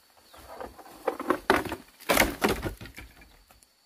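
A bamboo pole drops and clatters onto a pile of bamboo.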